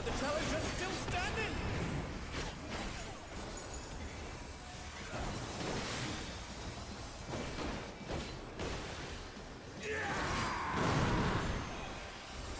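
Magic blasts whoosh and boom in a fast-paced fight.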